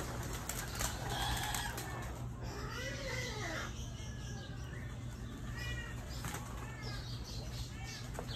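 Birds chirp and call nearby.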